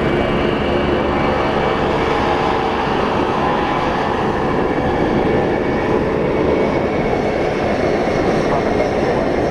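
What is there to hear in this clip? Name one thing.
A large jet plane's engines roar loudly and steadily as it taxis past.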